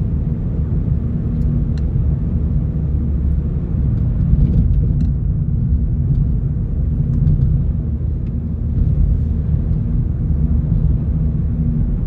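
Road noise rumbles inside a car driving on asphalt.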